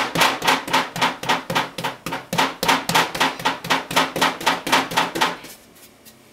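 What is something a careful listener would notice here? A wooden rolling pin thumps rapidly and loudly against a board.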